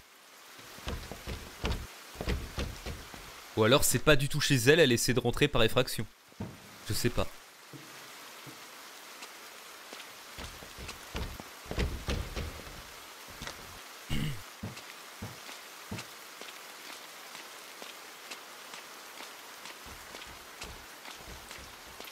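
Heavy rain pours steadily.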